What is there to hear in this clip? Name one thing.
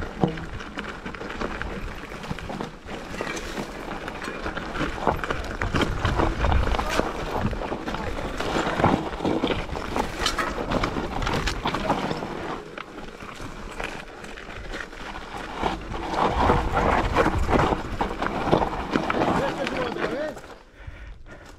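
Bicycle tyres crunch and rattle over loose rocky ground.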